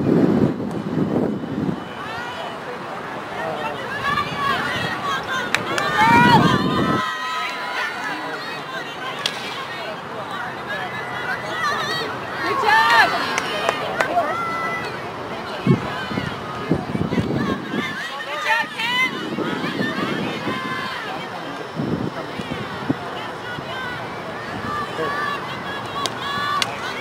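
A crowd of young women cheers and shouts outdoors.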